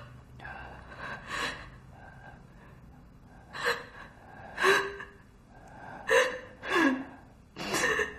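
A young man speaks weakly and breathlessly, in short bursts.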